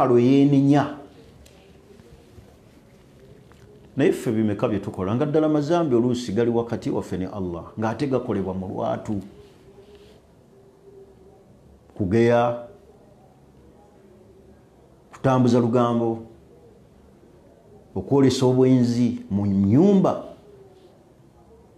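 A man speaks with animation into a close microphone, with long pauses.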